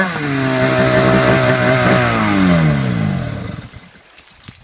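A snowmobile engine winds down and stops.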